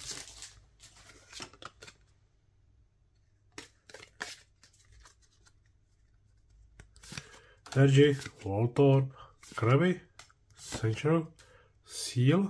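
Trading cards rustle and tap as they are shuffled by hand.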